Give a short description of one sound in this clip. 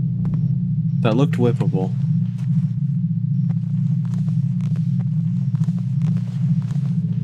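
Hands and feet clang on a metal ladder.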